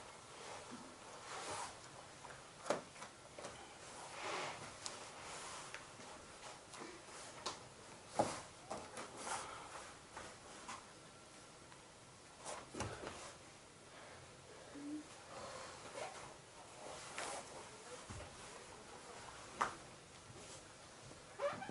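Bodies shift and bump on foam mats.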